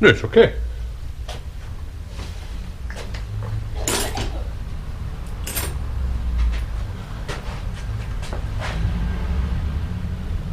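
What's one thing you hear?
Metal tools clink and clatter as they are handled.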